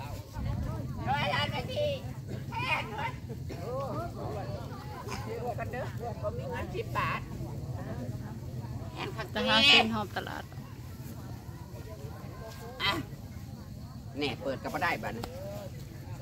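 Children shout and call out nearby.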